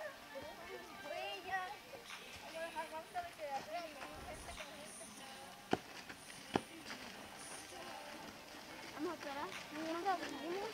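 A group of men, women and children talk as they walk together outdoors.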